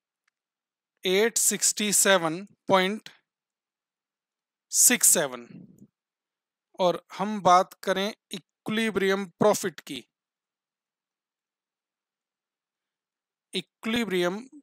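A man speaks calmly and clearly into a close microphone, in short bursts with pauses.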